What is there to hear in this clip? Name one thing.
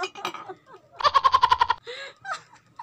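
A young man laughs loudly in quick bursts close by.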